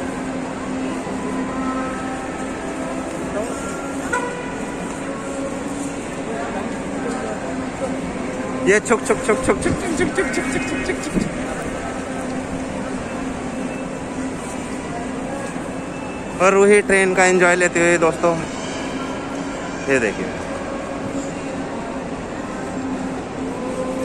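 A small electric ride train hums as it rolls along.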